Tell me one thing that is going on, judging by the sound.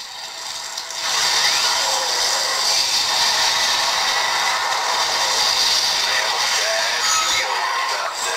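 Video game sound effects and music play from a small phone speaker.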